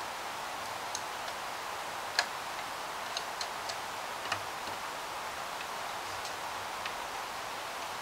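Small plastic and metal parts click and tap as hands work on an appliance.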